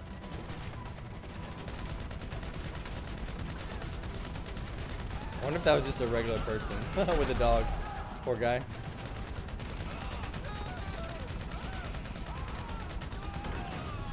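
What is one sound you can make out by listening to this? A helicopter's rotor whirs steadily.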